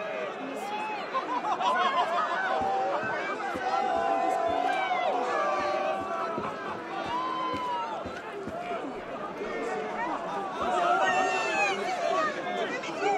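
A crowd of men and women chatters and murmurs all around.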